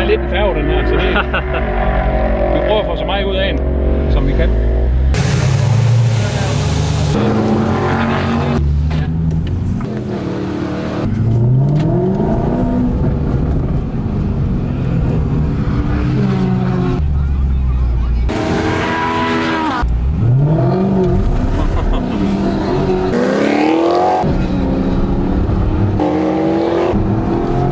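A car engine revs and roars as the car accelerates hard.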